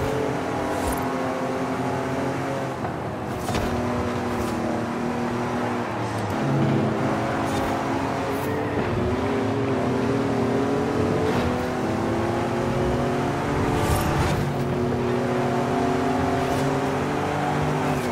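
A racing game's car engine revs and roars steadily, shifting pitch with the speed.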